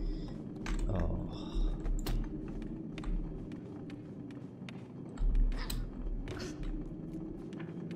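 Footsteps creak on wooden boards.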